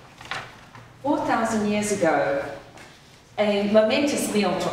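A woman sings into a microphone in an echoing hall.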